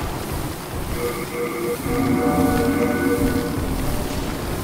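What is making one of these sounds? A menu chimes with a short tone.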